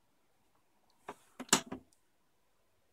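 A plastic lid on a record player swings shut with a clatter.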